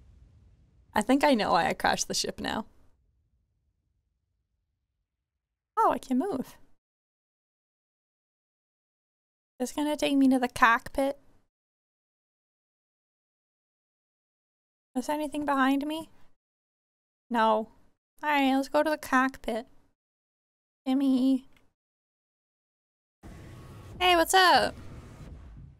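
A young woman speaks with animation into a microphone, in short bursts with pauses.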